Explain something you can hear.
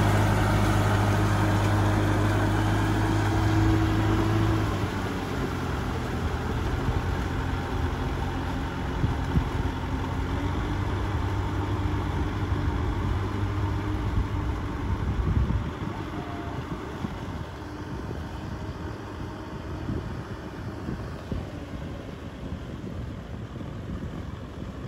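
A tractor engine rumbles steadily, loud and close, then grows quieter as it moves away.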